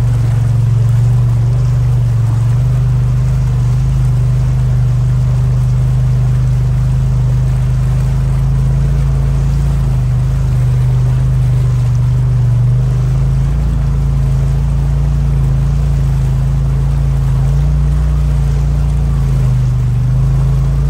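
An off-road vehicle's engine drones steadily close by.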